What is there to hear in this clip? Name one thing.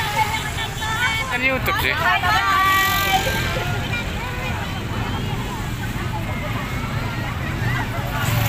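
A crowd chatters around, outdoors.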